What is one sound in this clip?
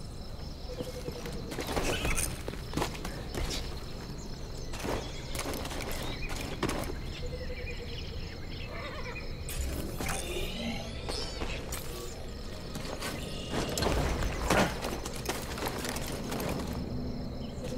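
Footsteps run quickly over grass and stone.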